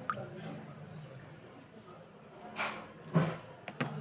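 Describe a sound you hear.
Water splashes and sloshes in a basin.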